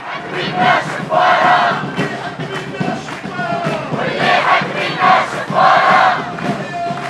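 A crowd of men and women chants loudly in unison outdoors.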